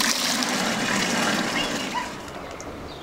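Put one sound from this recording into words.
Liquid pours with a splashing gush into a metal tin.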